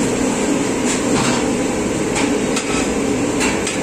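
A metal ladle scrapes against the side of a pot.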